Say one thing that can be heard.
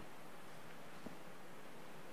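A faint knock sounds nearby.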